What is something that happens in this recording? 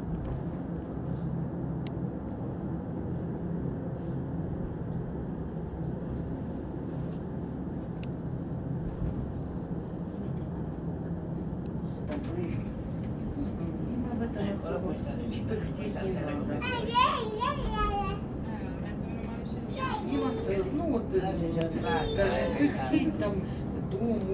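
A lift hums and rumbles steadily as it moves through a shaft.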